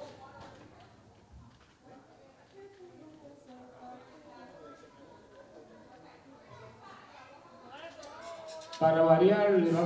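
A woman speaks softly through a microphone in a large hall.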